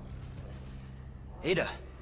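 A young man breathes heavily and grunts close by.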